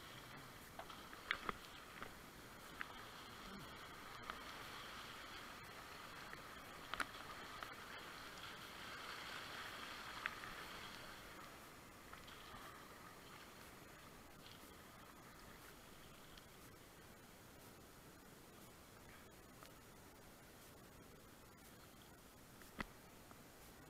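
A kayak paddle splashes into the water.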